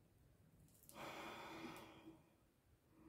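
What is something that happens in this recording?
A woman sniffs softly.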